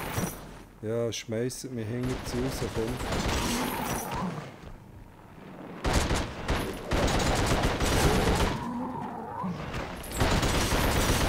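A gun fires rapid bursts of shots that echo in a cave.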